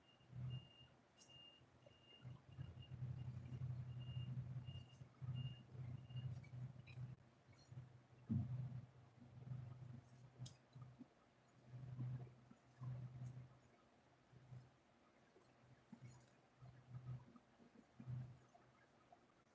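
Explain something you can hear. A pencil scratches and scrapes across paper in short strokes, close by.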